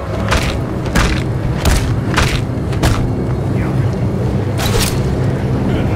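A blade swishes and strikes in quick, repeated slashes.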